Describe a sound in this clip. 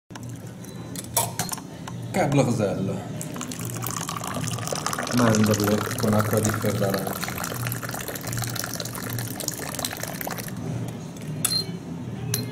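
A metal teapot lid clinks.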